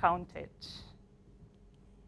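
A young woman speaks calmly into a microphone.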